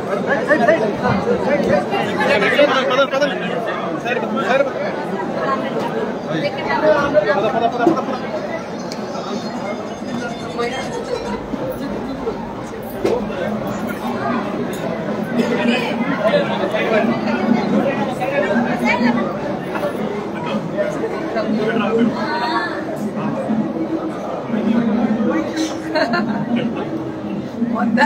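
A large crowd chatters and shouts loudly all around.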